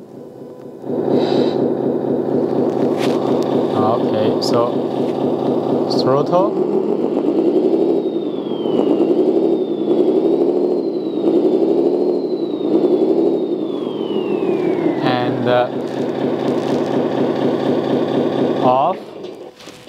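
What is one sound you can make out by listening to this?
A small loudspeaker plays a rumbling engine sound that revs up and down.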